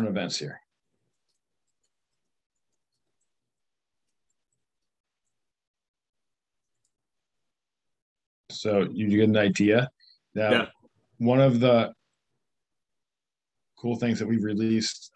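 A man talks calmly over an online call, in short bursts with pauses.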